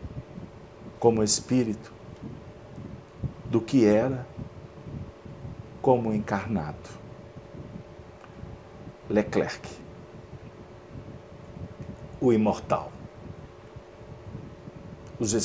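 A middle-aged man speaks calmly in short phrases into a close microphone, with pauses between them.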